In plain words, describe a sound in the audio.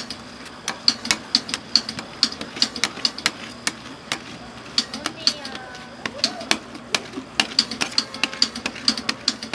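Metal spatulas scrape and tap rapidly against a cold metal pan.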